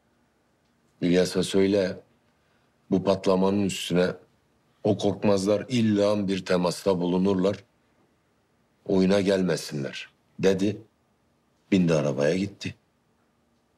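A man speaks tensely and forcefully, close by.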